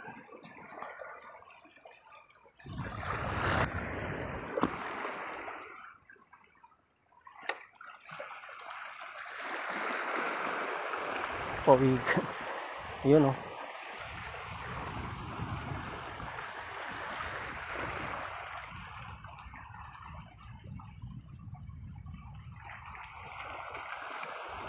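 Small waves lap gently against rocks nearby.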